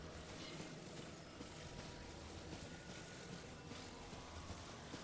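A steady magical hum drones throughout.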